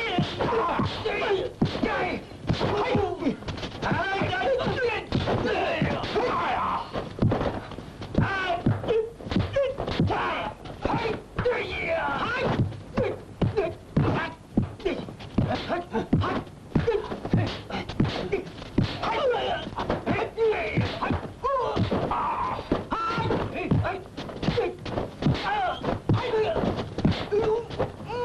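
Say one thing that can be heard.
Punches and kicks land with sharp smacks throughout a fight.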